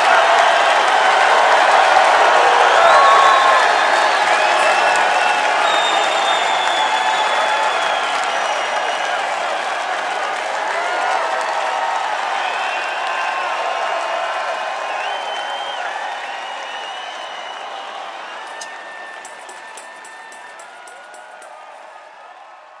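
A crowd whistles shrilly.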